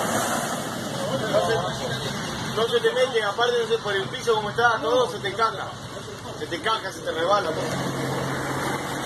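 Men talk with animation nearby.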